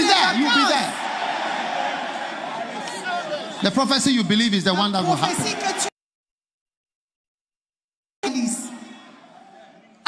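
A large crowd cheers and shouts in a large hall.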